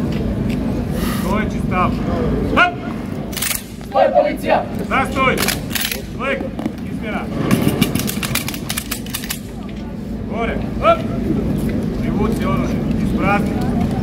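Young men shout in unison while striking.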